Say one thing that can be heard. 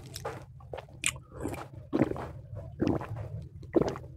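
A man sips and gulps a drink from a metal cup.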